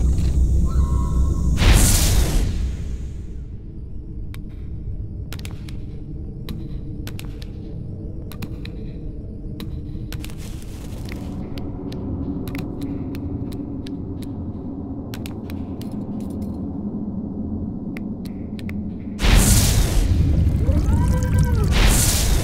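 Soft, low music plays steadily.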